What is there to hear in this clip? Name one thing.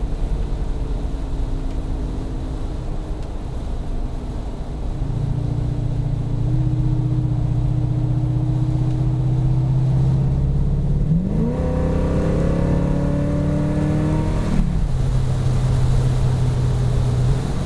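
Tyres roll on a road with a low rumble.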